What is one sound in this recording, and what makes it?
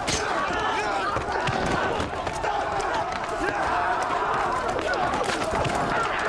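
Several men shout and grunt.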